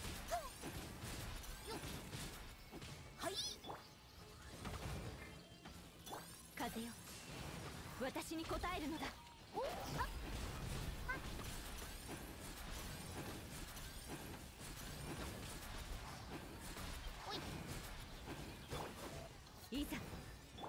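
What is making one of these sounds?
Fiery attacks whoosh and burst again and again.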